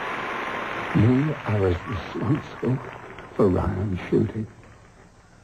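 A man speaks in a low, intense voice.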